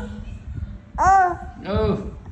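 A rubber chicken toy squawks.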